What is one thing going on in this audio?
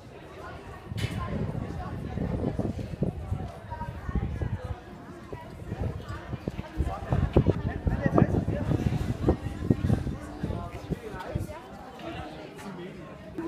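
A crowd of people chatters nearby outdoors.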